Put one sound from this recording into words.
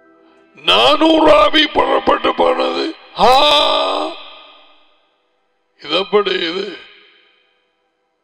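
A man speaks with animation, close into a headset microphone.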